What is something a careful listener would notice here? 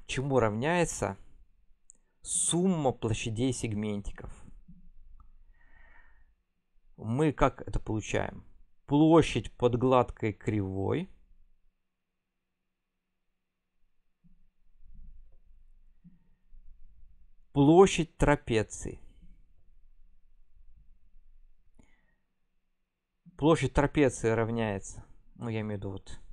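A young man speaks calmly into a close microphone, pausing now and then.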